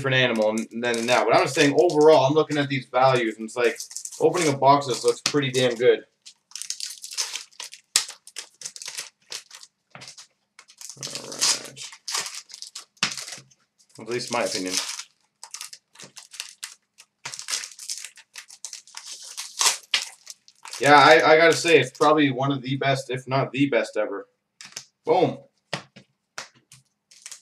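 Trading cards rustle and flick as they are sorted by hand.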